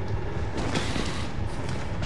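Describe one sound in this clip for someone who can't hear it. Heavy footsteps thud on a hard floor nearby.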